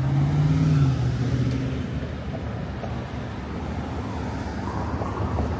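Car engines rumble in street traffic outdoors.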